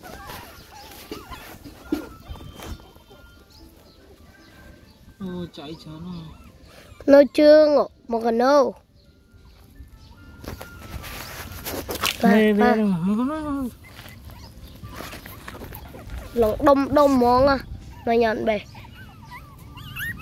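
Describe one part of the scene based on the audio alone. Puppies lap and chew food.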